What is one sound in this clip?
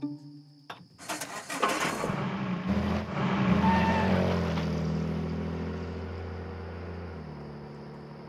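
A car engine cranks and roars to life, then slowly fades.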